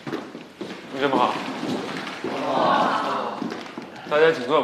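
A group of people greet a man loudly together.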